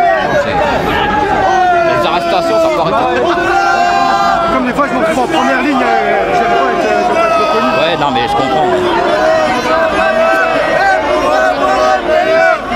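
A crowd of men and women sings together loudly outdoors.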